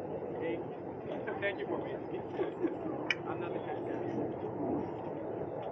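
A crowd of men and women chatter at once.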